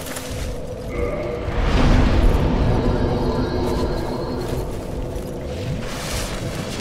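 A bonfire flares up with a deep whoosh and a ringing tone.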